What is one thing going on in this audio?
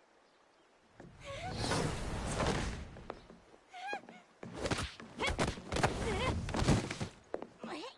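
Heavy blows thud in a fight.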